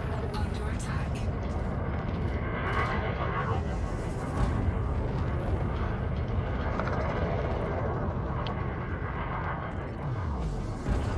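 A spaceship's engines rumble deeply and steadily.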